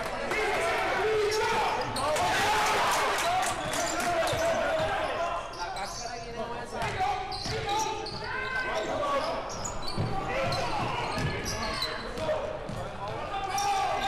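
Basketball shoes squeak sharply on the hardwood floor.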